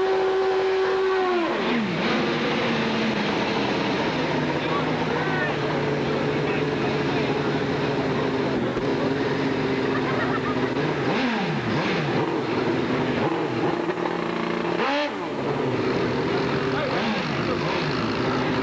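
A motorcycle engine roars away at full throttle.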